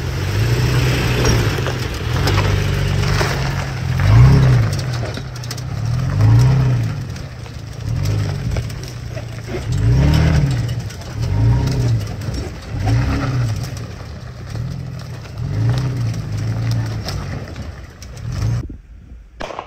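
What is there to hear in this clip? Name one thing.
A truck engine rumbles and revs unevenly up close.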